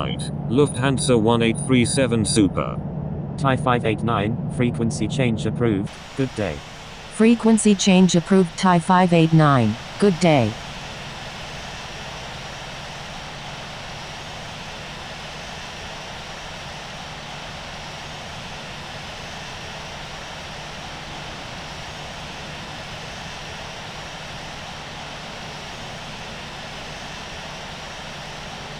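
Jet engines hum steadily at idle.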